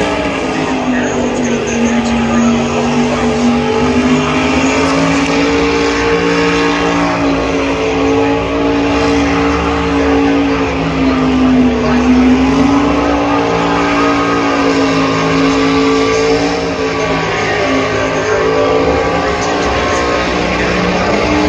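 A race car engine roars and revs up and down.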